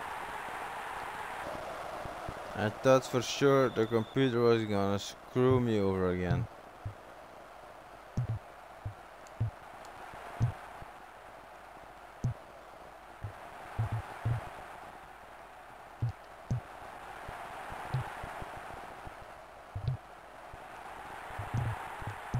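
A stadium crowd roars steadily, swelling and easing.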